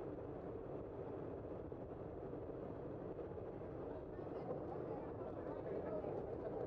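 Tyres hum on smooth pavement.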